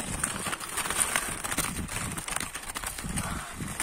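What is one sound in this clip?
A goldfinch flutters against a wire cage.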